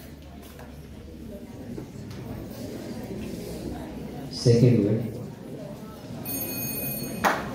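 A young man speaks into a microphone over loudspeakers in a large hall.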